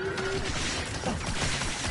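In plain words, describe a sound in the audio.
Blaster shots zap.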